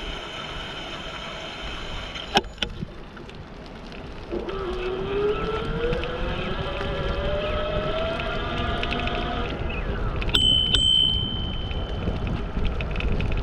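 Wind rumbles against a microphone outdoors.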